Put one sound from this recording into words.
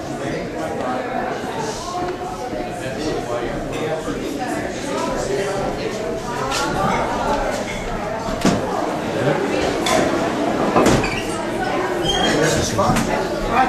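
Many people chatter at once.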